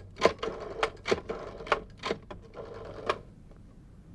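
A telephone handset clatters and rattles as it is picked up.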